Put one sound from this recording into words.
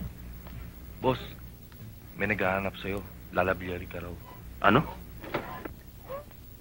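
Two men argue in raised voices up close.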